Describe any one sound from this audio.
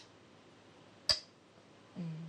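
A go stone clicks onto a wooden board.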